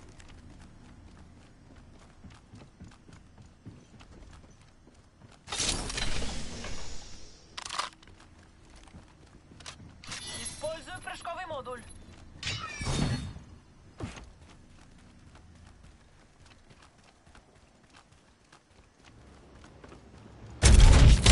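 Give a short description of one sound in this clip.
Quick footsteps patter on hard ground.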